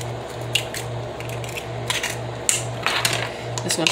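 An egg cracks against a hard edge.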